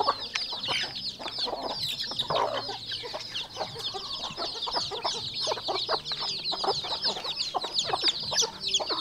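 Chickens cluck softly.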